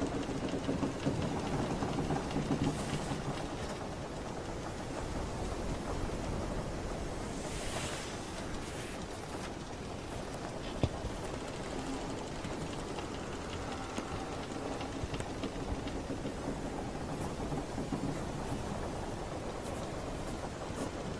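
Gentle waves lap and wash steadily against a wooden ship.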